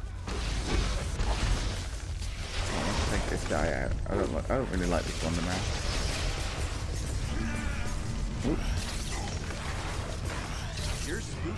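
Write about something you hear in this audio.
Game combat effects whoosh and crash throughout.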